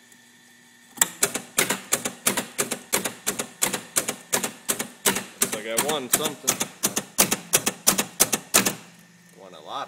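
Relay switches click and clatter rapidly.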